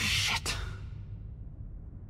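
A man whispers softly close by.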